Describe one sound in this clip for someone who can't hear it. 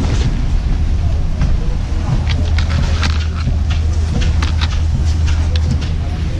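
Skis clatter against each other as they are handled.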